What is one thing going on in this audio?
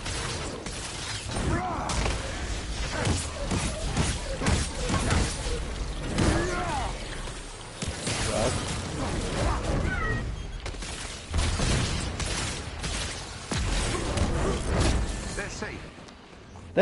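Punches and blasts thud and crackle in a fight.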